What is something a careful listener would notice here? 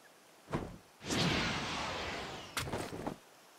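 Something whooshes down through the air.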